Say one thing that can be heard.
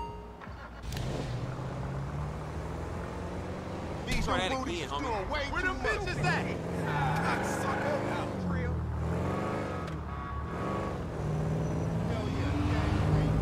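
A car engine hums and revs as a car drives off.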